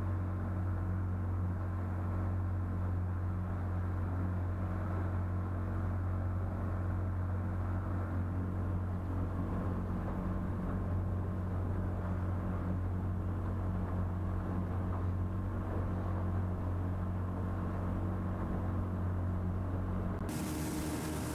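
An outboard motor drones steadily up close.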